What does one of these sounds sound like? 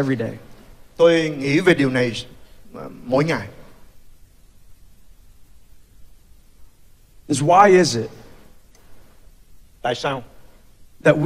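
A second man speaks calmly through a microphone.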